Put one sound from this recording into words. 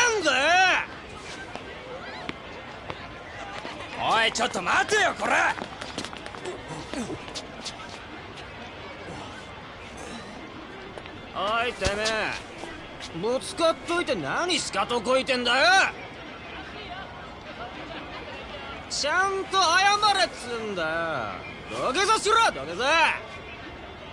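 A young man shouts angrily and aggressively, close by.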